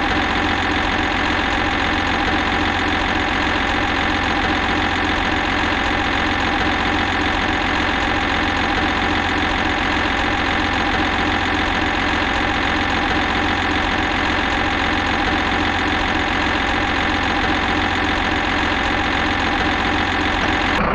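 A crane's diesel engine drones steadily.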